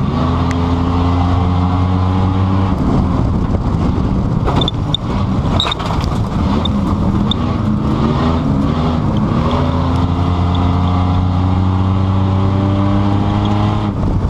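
A car engine hums steadily, its pitch rising and falling as it changes speed.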